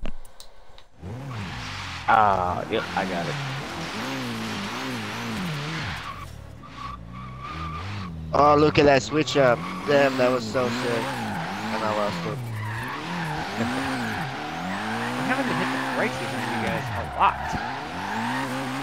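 A car engine revs and roars, rising and falling in pitch.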